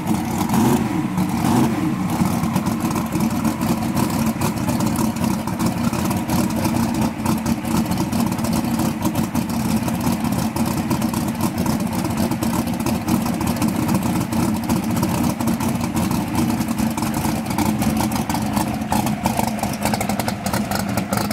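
A loud race car engine idles with a deep, rough, lumpy rumble close by.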